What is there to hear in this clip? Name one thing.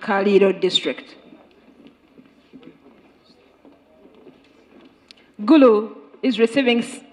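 A man speaks loudly through a microphone, with an echo.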